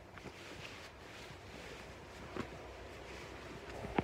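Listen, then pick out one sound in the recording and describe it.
Fabric rustles as bedding is handled.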